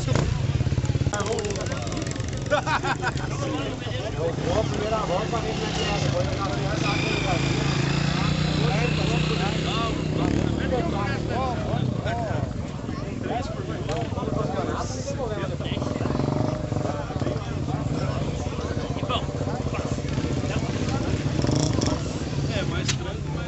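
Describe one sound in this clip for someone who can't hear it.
A crowd of men chatter outdoors.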